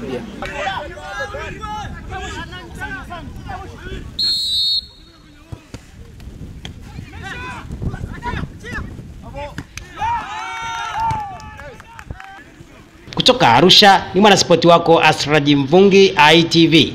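Young players shout and call out to each other outdoors.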